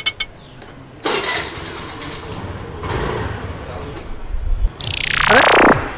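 A motor scooter engine idles with a low rumble.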